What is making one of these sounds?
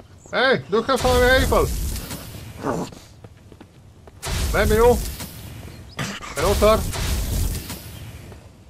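A flamethrower roars in short bursts.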